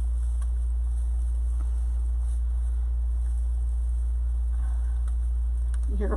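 Tulle mesh rustles and crinkles as hands scrunch it.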